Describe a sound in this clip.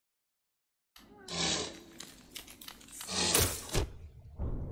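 Sharp slashing sounds of a game battle ring out.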